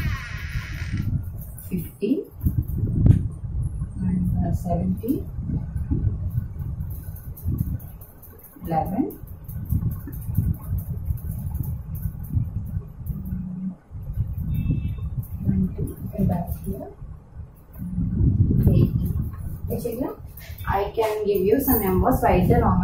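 A young woman speaks calmly and clearly, as if teaching.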